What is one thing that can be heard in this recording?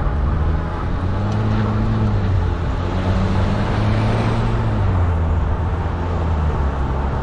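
A bus engine rumbles past close by.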